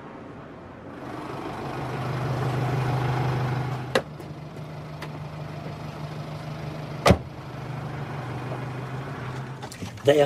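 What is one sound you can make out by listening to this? A taxi engine idles nearby.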